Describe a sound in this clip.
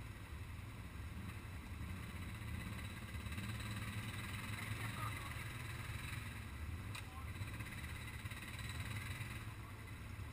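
Several quad bike engines idle and rumble nearby outdoors.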